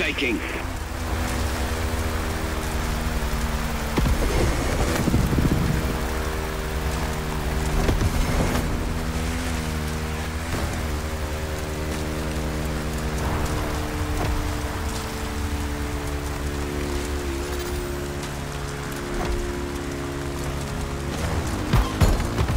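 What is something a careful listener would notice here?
A dirt bike engine drones steadily at high revs.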